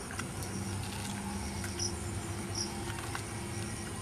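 A young man bites and chews crunchy corn up close.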